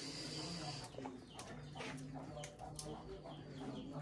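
Burning coals crackle faintly.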